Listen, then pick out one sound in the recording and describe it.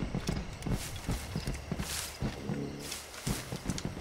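Leaves and branches rustle as someone pushes through bushes.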